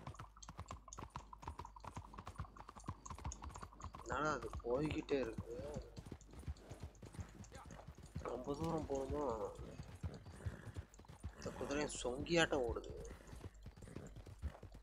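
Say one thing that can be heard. Horse hooves clop steadily on a road.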